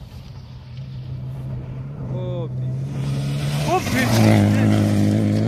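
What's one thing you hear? A rally car engine roars loudly as the car speeds past.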